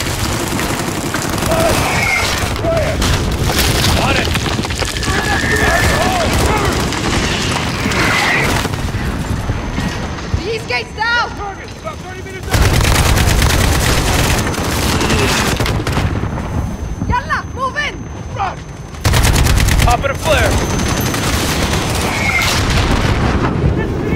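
Rifles fire in rapid bursts close by.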